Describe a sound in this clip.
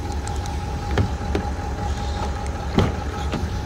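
A car door handle clicks as it is pulled.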